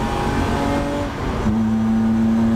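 A gear change briefly cuts the engine's roar before it picks up again.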